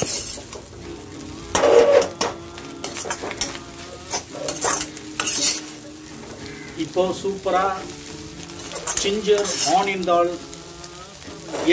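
A metal spatula scrapes and stirs food in an iron wok.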